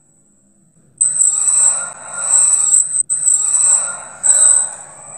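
A young man screams in terror.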